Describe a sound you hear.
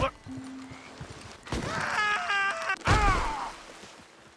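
A man's body thuds heavily on the ground after a fall.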